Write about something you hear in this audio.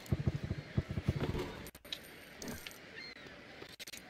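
Coins burst out of a machine and clatter to the ground.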